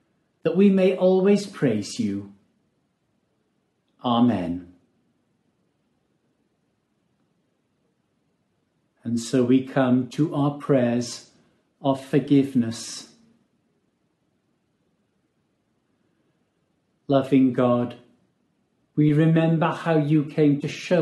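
An older man speaks calmly and close to a microphone, pausing between phrases.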